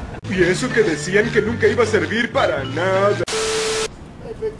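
A cartoon character speaks in a goofy voice.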